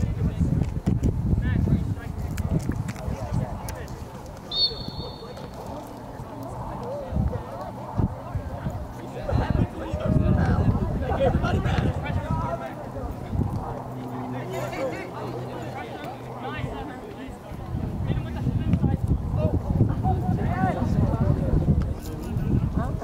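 Young men shout and call out across an open outdoor field.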